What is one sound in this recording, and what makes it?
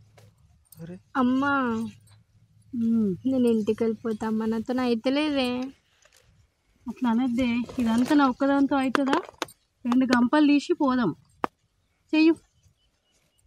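A woman sings a slow melody close by.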